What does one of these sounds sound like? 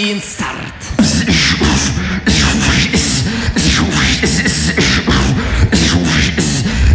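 A young man beatboxes into a microphone, making fast, punchy beats through loudspeakers.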